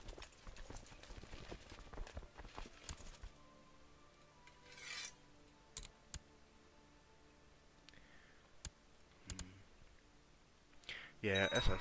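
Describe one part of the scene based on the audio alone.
Short interface clicks sound as windows open and close.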